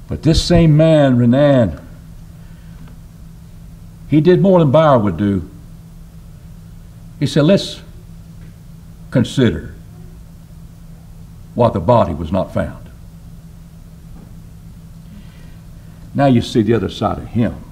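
An older man speaks slowly and calmly into a microphone, with pauses.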